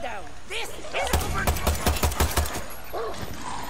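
A pistol fires a rapid series of shots.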